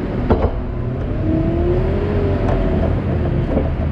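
A loader's grab pushes into a heap of grain with a soft scraping hiss.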